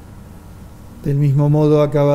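An older man sings steadily through a microphone in a large echoing hall.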